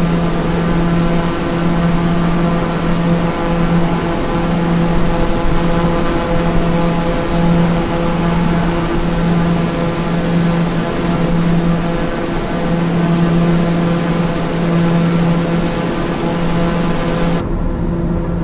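A single-engine turboprop drones at cruise, heard from outside.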